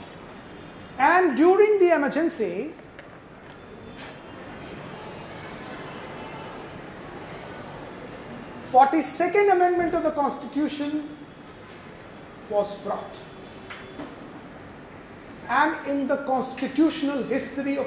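A middle-aged man speaks calmly into a microphone, heard through a loudspeaker in an echoing room.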